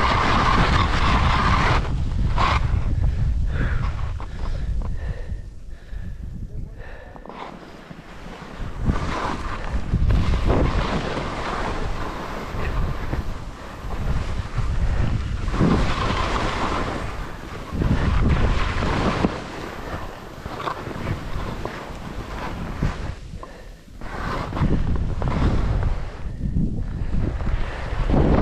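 Wind rushes loudly past the skier.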